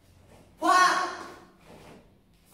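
A young man lets out a sharp, loud shout in an echoing room.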